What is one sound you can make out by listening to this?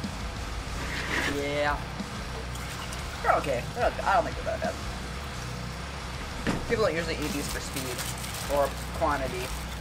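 A young woman and a man talk to each other nearby.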